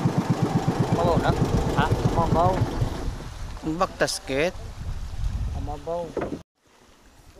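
A man talks nearby over the motor.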